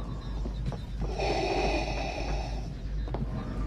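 A man breathes slowly and mechanically through a respirator.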